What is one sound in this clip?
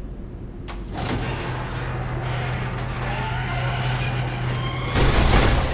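A heavy metal shutter door rumbles steadily as it rises.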